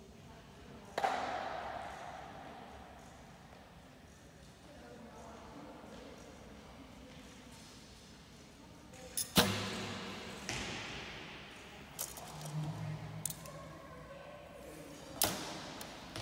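Bow strings snap sharply as arrows are released, echoing through a large hall.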